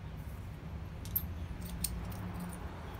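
Small metal pieces clink lightly against a steel block.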